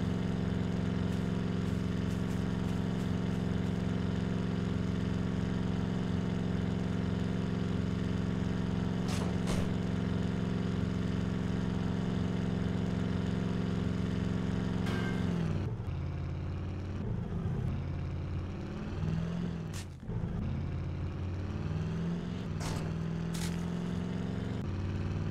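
An SUV engine drones at steady revs.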